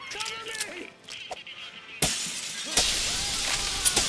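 Glass shatters loudly.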